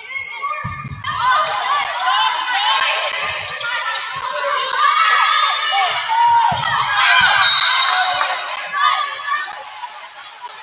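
Volleyball players shout and call to each other in a large echoing gym.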